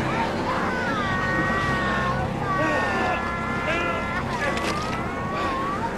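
A young girl wails and sobs loudly.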